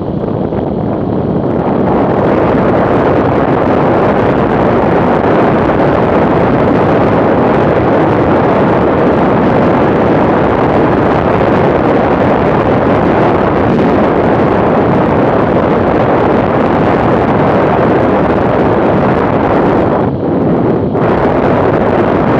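Strong wind roars loudly past a fast-moving motorcycle.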